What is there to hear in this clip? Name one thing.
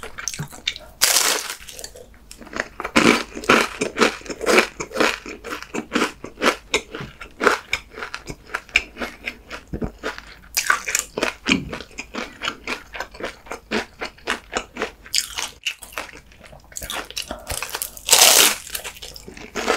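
A man slurps food noisily.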